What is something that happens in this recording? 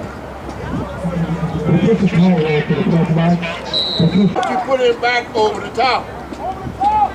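A crowd of people talk and call out loudly nearby outdoors.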